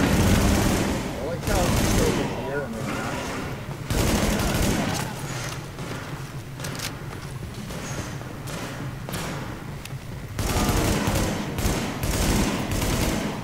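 Assault rifles fire in bursts.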